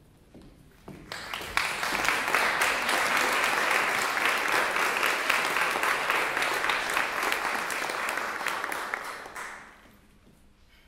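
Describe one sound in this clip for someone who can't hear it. An audience claps loudly in a large hall, then the clapping dies away.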